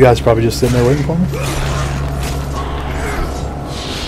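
Chained blades swing and slash through the air.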